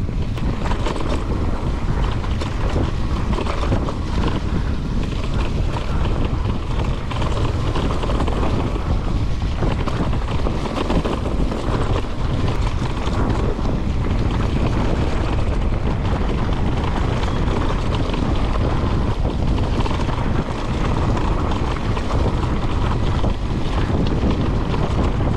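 Mountain bike tyres roll and crunch over dry leaves on a dirt trail.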